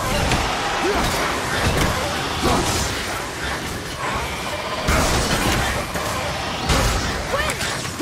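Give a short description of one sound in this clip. Heavy blows and impacts crash in a fight.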